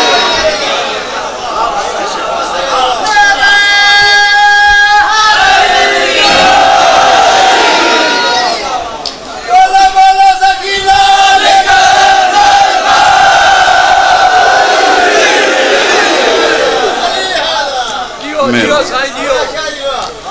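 A large crowd of men chants loudly together in an echoing hall.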